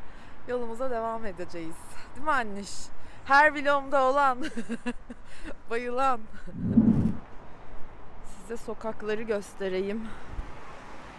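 A young woman talks cheerfully and with animation close by.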